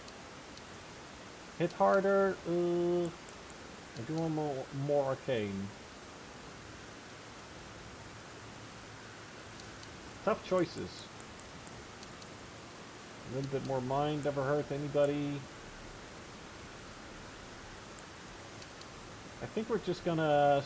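Soft menu ticks sound as a selection moves.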